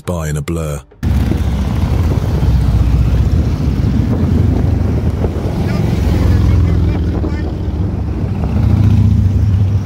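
Motorcycle engines rumble loudly as a group of motorcycles rides past close by.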